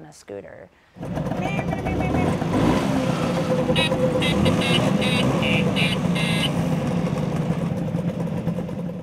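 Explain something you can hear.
Scooter engines idle and putter nearby.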